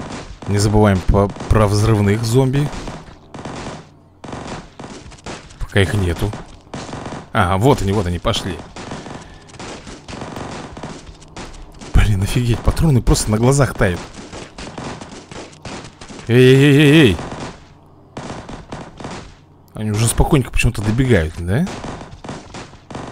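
Small guns fire in quick, rattling bursts.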